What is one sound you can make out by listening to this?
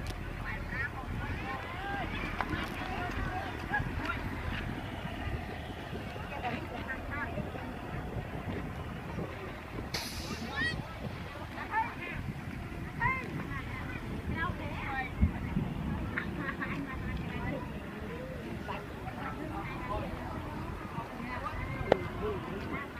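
Children shout and call out playfully in the water.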